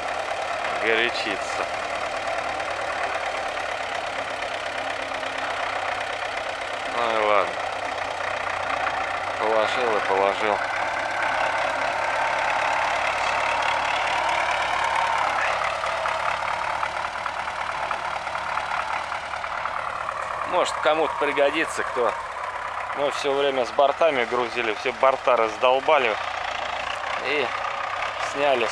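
A tractor engine runs with a steady drone.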